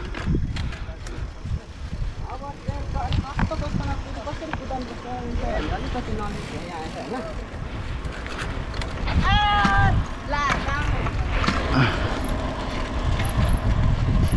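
Bicycle tyres roll and crunch over a rough road.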